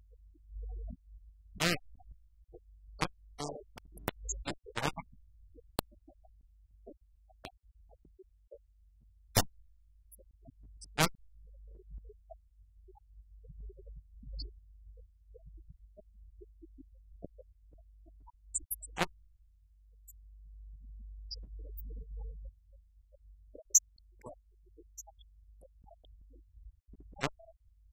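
Laptop keys click now and then.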